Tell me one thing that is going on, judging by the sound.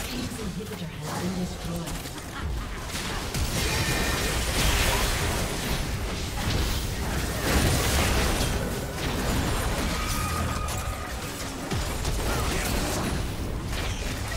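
Game spell effects crackle and blast in a busy battle.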